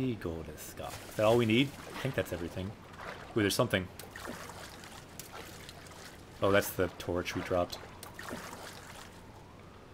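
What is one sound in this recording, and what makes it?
Water splashes as a figure swims.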